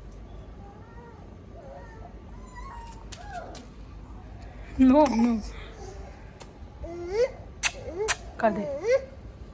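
A puppy whimpers and yelps in high, wavering cries.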